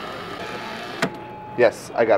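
A paper cup knocks against a metal drink dispenser.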